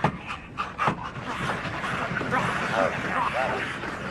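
A young man gasps in fear.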